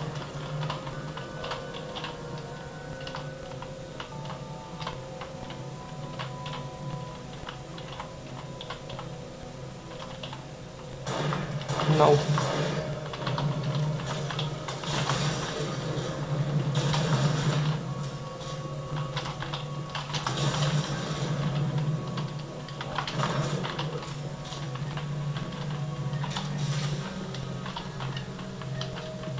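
Keys on a computer keyboard click and clatter steadily.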